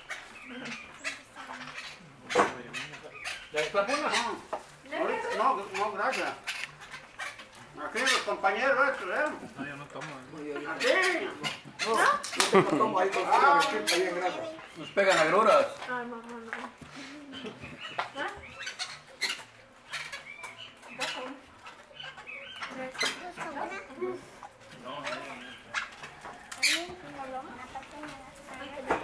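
Several adults and children talk and chat close by around a table.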